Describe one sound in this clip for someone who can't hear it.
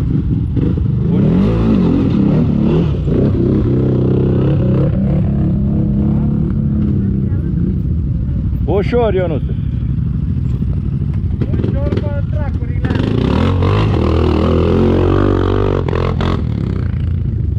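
Quad bike engines rumble and rev nearby, outdoors.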